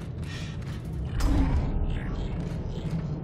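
A heavy mechanical door slides open with a loud hiss and rumble.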